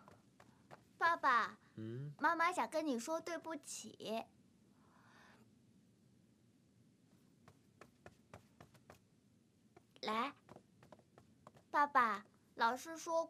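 A young woman speaks softly and pleadingly, close by.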